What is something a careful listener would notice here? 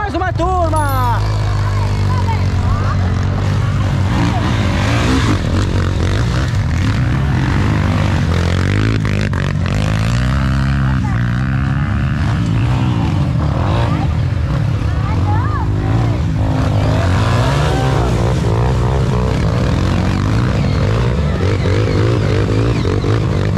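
Dirt bike engines rev and roar.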